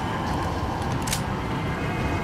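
A pistol is reloaded with a metallic click.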